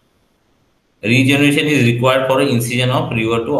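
A young man speaks calmly through an online call microphone.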